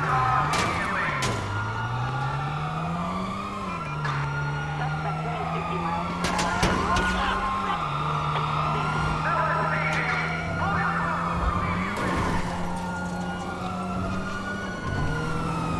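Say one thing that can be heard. Police sirens wail and rise and fall nearby.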